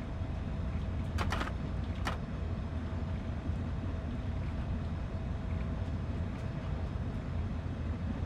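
Train wheels roll and clack over rail joints.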